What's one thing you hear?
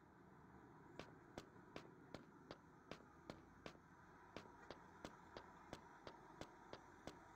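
Quick, even footsteps thud on a hard surface.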